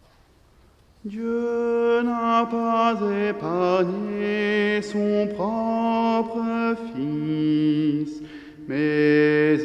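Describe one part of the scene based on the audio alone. Men chant together, echoing in a large hall.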